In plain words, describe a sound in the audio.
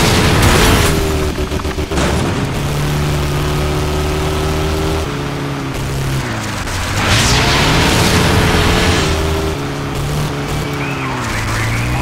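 Tyres crunch and skid on dirt.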